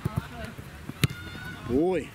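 A foot kicks a ball with a sharp thud.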